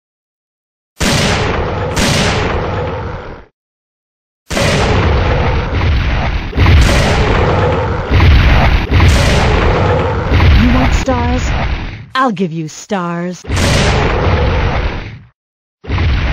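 Loud gunshots fire again and again, echoing.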